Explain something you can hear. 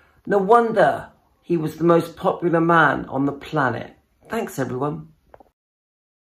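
A man speaks close to the microphone with animation.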